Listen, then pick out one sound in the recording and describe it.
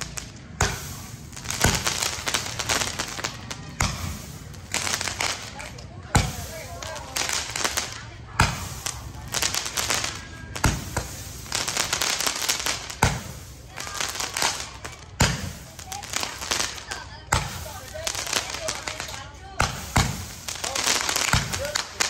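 Fireworks launch with loud booming thumps at a steady beat.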